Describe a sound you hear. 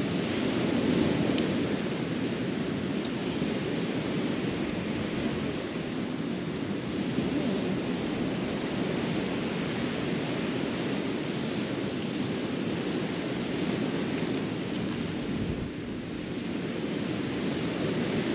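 Ocean waves wash onto a sandy beach.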